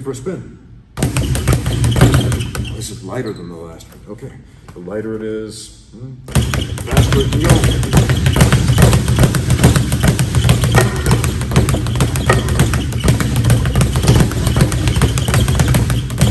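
A speed bag rattles in a fast, steady rhythm of punches.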